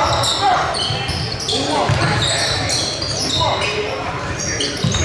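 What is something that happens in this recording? Sneakers squeak sharply on a hard court in a large echoing gym.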